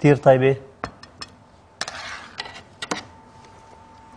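A knife scrapes along the edge of a baking tray.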